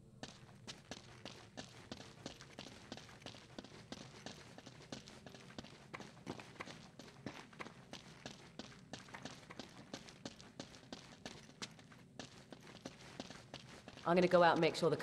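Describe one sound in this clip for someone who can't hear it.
Footsteps crunch steadily over rubble and debris.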